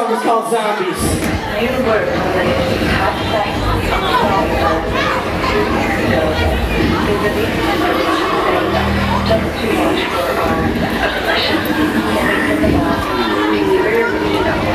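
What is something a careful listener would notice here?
An electric bass guitar plays a thumping line through loudspeakers.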